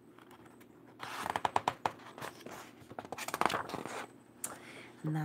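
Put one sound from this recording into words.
Paper pages rustle and flip as a book's page is turned.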